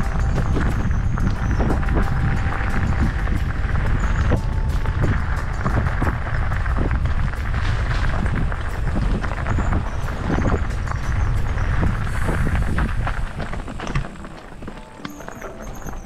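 Bike tyres crunch and rattle over loose gravel and stones.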